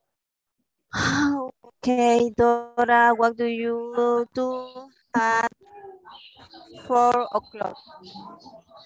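A woman speaks with animation into a close microphone, heard over an online call.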